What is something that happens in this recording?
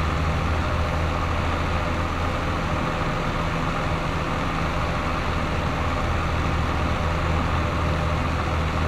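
Tyres rumble over a dirt track.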